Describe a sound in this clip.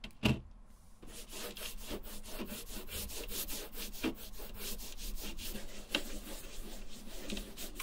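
A cotton swab rubs and squeaks against soft rubber.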